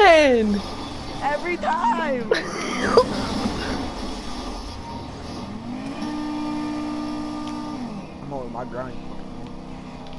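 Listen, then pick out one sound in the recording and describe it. A car engine revs and roars.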